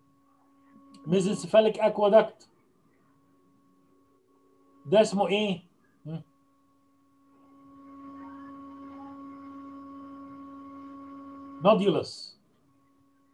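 An elderly man lectures calmly over an online call.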